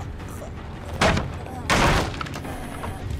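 A wooden pallet slams down with a loud crash.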